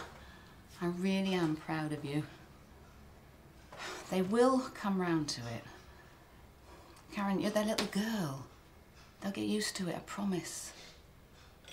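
Another woman answers softly, close by.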